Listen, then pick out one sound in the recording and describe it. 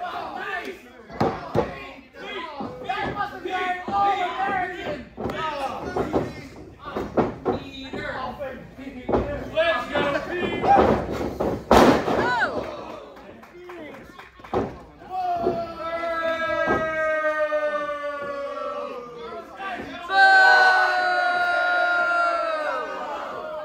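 Bodies thud and slam onto a wrestling mat in a large echoing hall.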